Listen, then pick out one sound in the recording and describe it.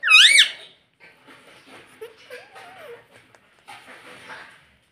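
A parrot chatters and mumbles softly.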